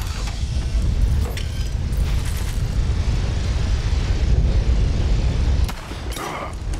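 Heavy gunfire booms and rumbles loudly in a game.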